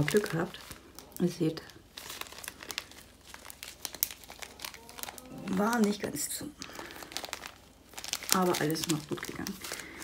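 Small beads rattle and shift inside a plastic bag.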